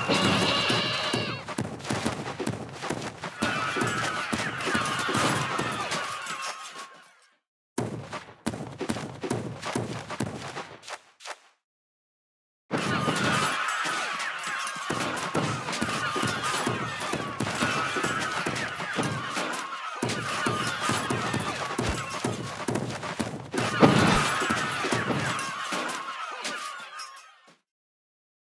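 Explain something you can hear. Small creatures clash in battle with rapid pops and thuds.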